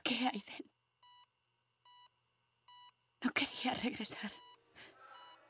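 A young girl gasps loudly close by.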